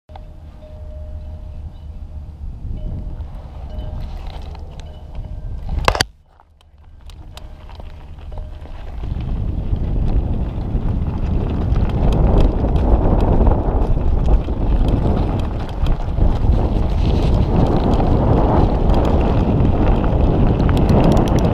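Wind roars and buffets the microphone outdoors.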